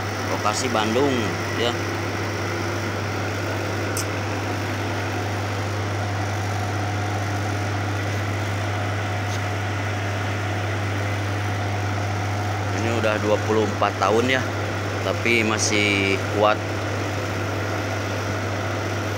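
An electric vacuum pump hums.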